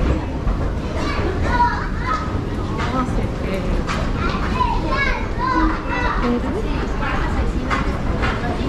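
Men and women chatter nearby in an echoing hall.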